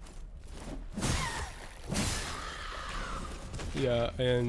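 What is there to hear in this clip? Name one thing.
A blade swings through the air with a swift whoosh.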